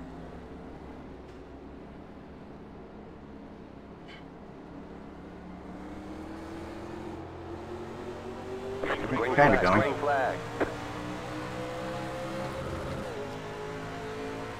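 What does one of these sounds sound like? A race car engine hums steadily and then revs higher as the car speeds up.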